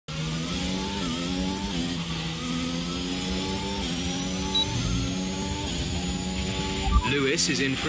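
A racing car engine screams at high revs, dropping briefly with each gear change.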